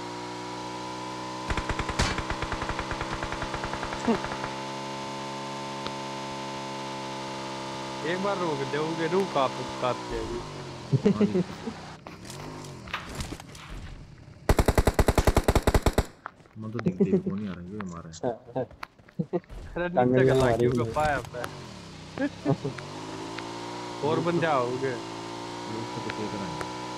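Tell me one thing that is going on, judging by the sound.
A motorcycle engine hums steadily and revs up and down.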